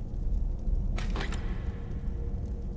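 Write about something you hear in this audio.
A heavy chest creaks open with a thud.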